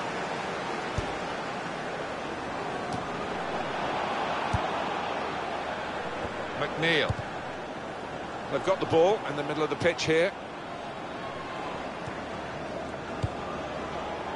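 A ball is kicked with dull thuds now and then.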